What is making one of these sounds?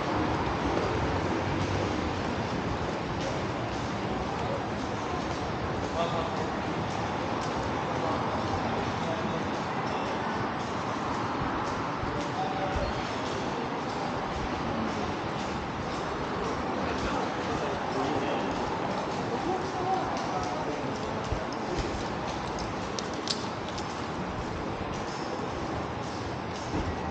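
A crowd of people murmurs and chats under an echoing roof.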